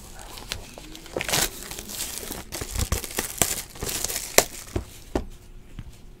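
A plastic card pack wrapper crinkles as it is torn open.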